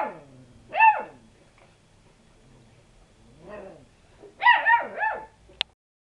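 A puppy yaps in short, high barks close by.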